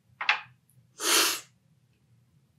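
A man slurps loudly from a spoon.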